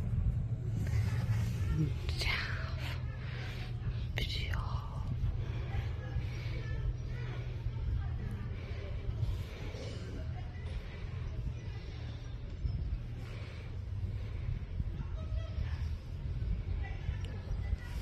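A hand rubs and scratches a dog's fur with a soft rustle.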